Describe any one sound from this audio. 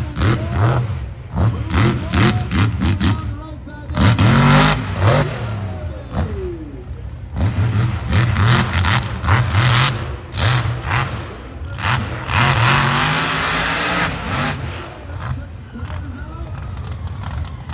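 A monster truck engine roars and revs hard nearby.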